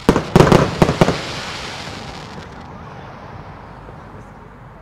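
Fireworks crackle after the bursts.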